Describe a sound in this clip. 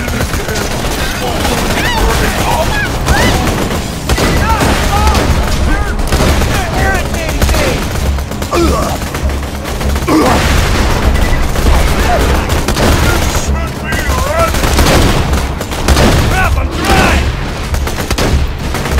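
Gunfire rattles and bangs in a video game.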